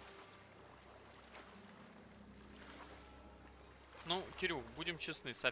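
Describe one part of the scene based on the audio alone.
Ocean waves roll and wash softly.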